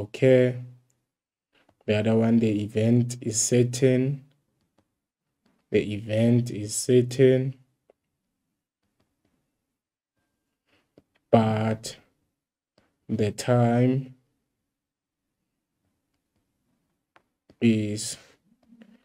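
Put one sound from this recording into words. A young man speaks calmly and clearly into a close microphone, pausing between phrases.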